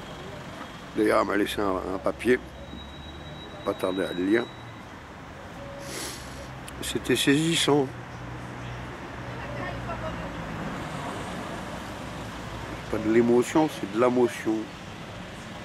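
An older man speaks close to the microphone in short, animated bursts with pauses between them.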